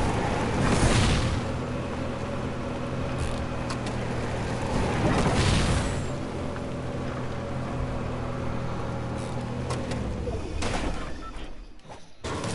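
A small cart engine hums steadily.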